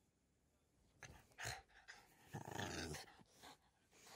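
Fur rubs and rustles against the microphone up close.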